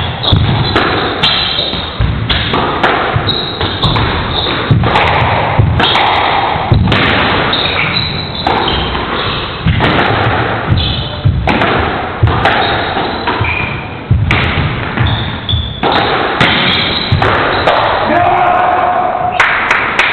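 A squash ball smacks hard off rackets and walls in a fast, echoing rally.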